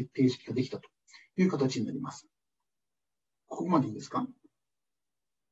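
A man speaks calmly through an online call microphone, with pauses.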